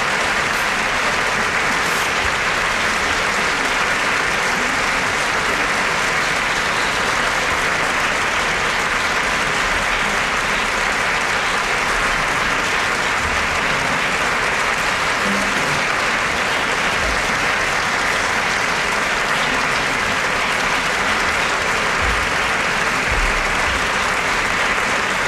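A radio hisses with loud, steady static.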